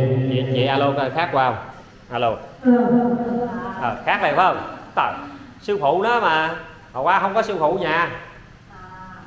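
A middle-aged woman sings loudly into a microphone, heard through a loudspeaker.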